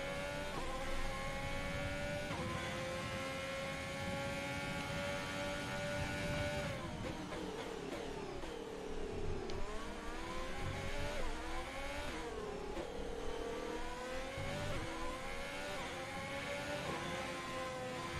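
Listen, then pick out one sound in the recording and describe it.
A racing car engine screams at high revs, rising through the gears and dropping when braking.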